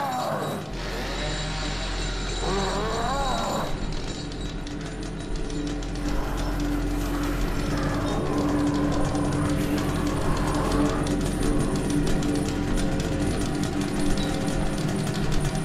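Footsteps shuffle softly over a gritty floor.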